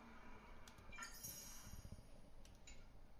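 A bright sparkling chime rings as a reward pops up.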